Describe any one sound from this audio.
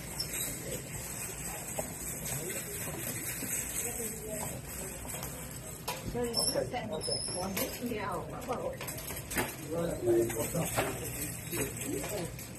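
Shoppers murmur and chatter nearby in a busy store.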